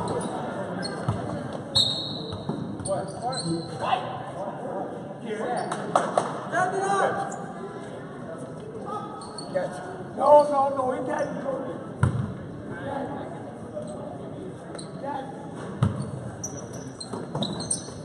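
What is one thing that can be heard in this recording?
A basketball thuds on the floor.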